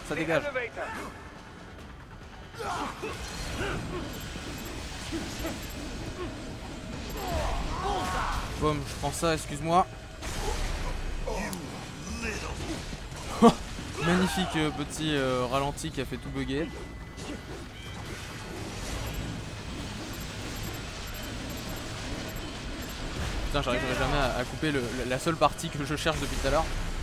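Blades slash and clang against metal.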